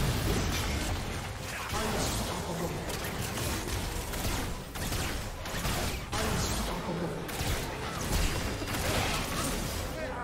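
Spells and attacks crackle and boom in a fast game battle.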